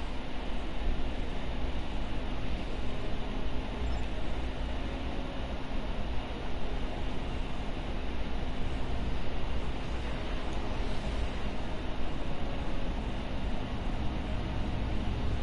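Spaceship engines hum low and steadily.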